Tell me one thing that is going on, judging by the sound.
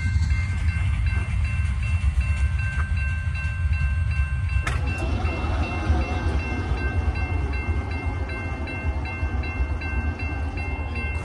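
A railway crossing bell rings rapidly and steadily.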